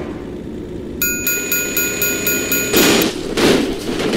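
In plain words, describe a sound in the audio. A railway crossing bell rings in quick, even strokes.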